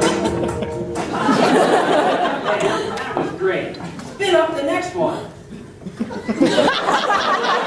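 A man speaks cheerfully, close by.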